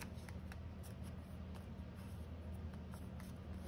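Paper rustles and crinkles softly between fingers.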